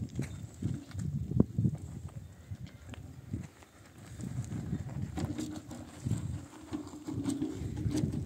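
A wheelbarrow rattles as it rolls over rough ground.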